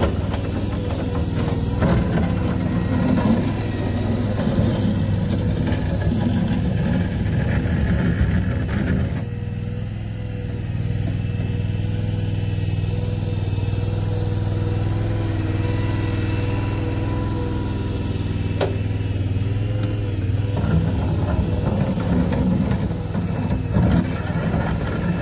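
A small loader's engine revs and labours as it moves.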